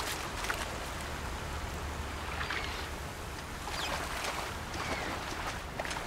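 Water splashes and sloshes as someone wades through a river.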